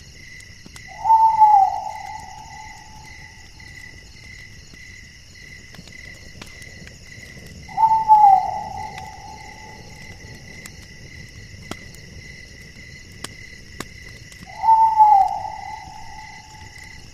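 An owl hoots now and then, each call sliding down and fading.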